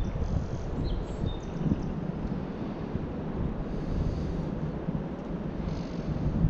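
Wind blows hard across open water outdoors.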